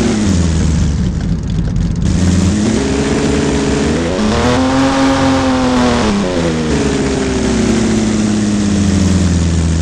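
A car engine hums, rising in pitch as it speeds up and falling again as it slows.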